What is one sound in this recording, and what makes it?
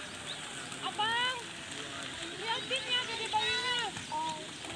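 Young children shout and chatter nearby outdoors.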